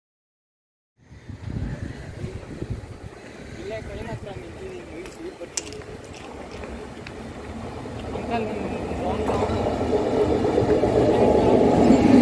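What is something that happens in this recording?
An electric train approaches on the tracks and grows louder.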